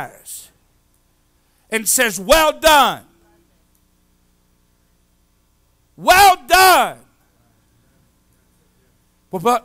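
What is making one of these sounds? A man preaches with animation, speaking in loud bursts with long pauses.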